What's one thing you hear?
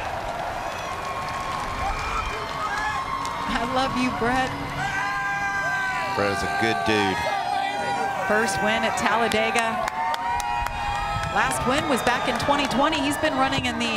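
A large crowd cheers and whistles outdoors.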